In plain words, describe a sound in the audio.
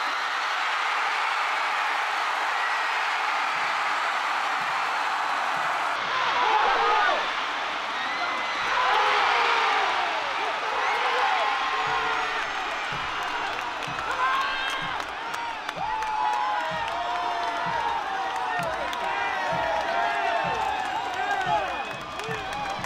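A large stadium crowd cheers loudly.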